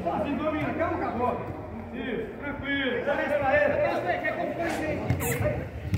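A football thuds as a player kicks it on grass.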